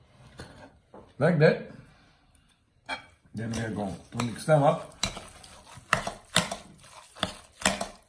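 A spoon scrapes and stirs in a glass bowl.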